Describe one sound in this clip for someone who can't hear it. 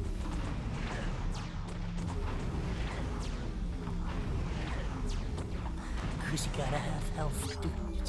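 A wave of fire roars.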